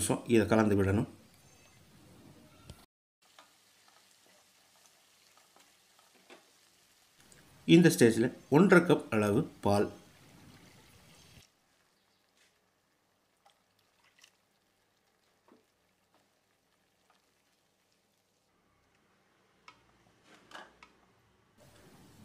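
A wooden spatula scrapes and stirs in a frying pan.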